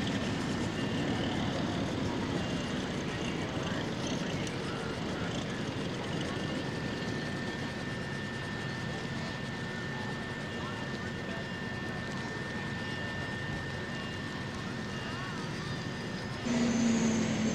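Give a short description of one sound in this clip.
A racing boat's engine roars loudly at speed.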